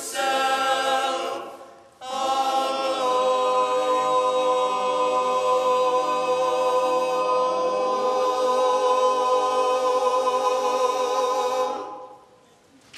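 A choir of young men sings in close harmony in an echoing hall.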